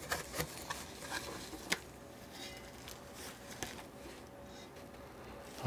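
A plastic bag crinkles as a panel is pulled out.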